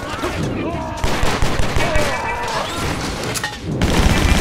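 Gunshots ring out in quick bursts.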